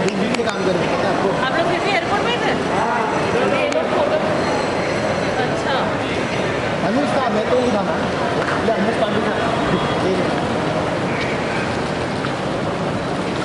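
A crowd of people talk and call out nearby in a busy, echoing hall.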